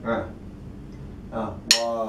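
A drum is struck once.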